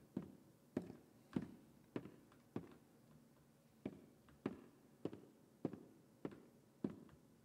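Slow footsteps thud on a wooden floor in a large echoing hall.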